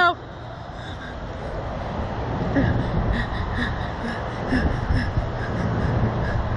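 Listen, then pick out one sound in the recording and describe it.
Two young girls laugh and shriek with excitement, close by.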